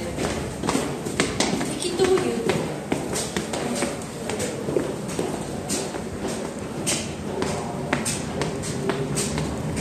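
Footsteps climb concrete stairs in an echoing stairwell.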